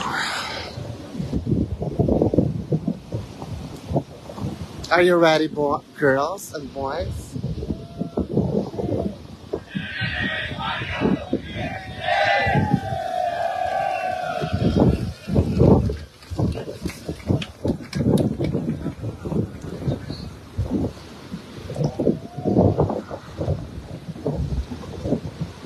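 A large group of young men chant and shout rhythmically together outdoors.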